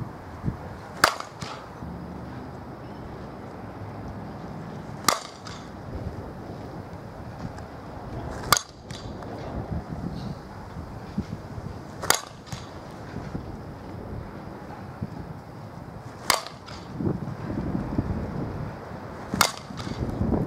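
A bat hits a softball with a sharp crack.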